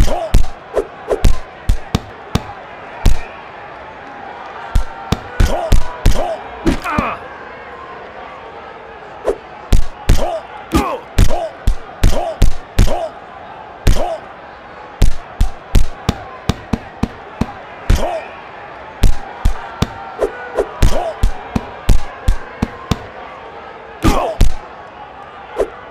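Punches land with sharp, quick thuds again and again.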